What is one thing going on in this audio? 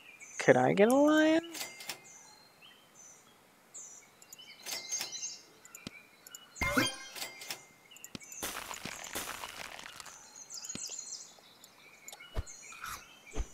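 Mouse clicks tap as game pieces are bought and placed.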